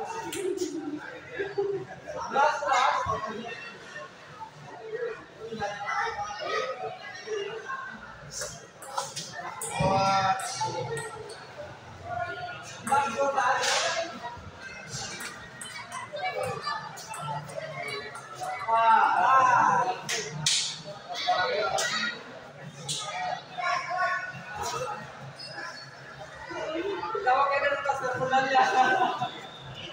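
Men talk nearby in an echoing hall.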